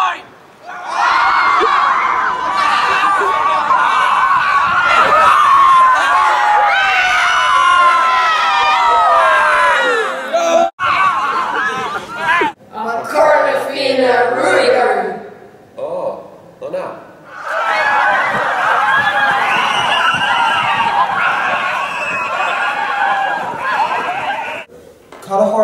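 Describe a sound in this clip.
A large group of teenagers chants loudly in unison outdoors.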